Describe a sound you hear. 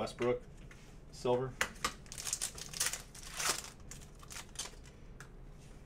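A foil card pack crinkles and tears as hands open it.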